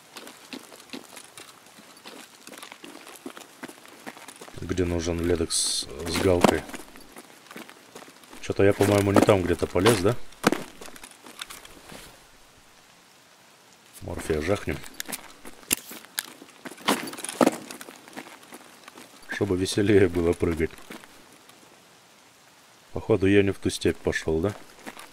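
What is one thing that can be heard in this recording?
Footsteps crunch on rock and dirt.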